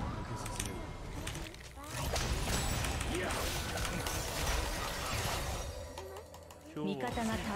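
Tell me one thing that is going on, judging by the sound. Game spell effects crackle and clash.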